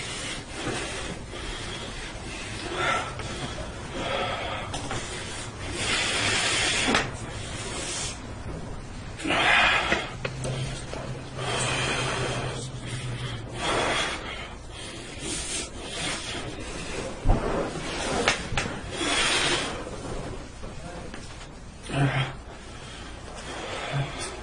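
A man preaches forcefully into a microphone.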